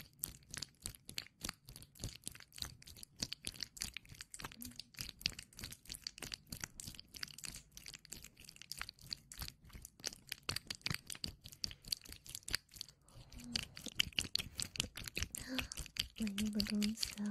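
A young woman whispers softly, close to a microphone.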